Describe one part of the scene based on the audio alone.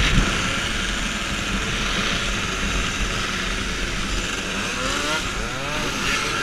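Several scooter engines buzz steadily close by.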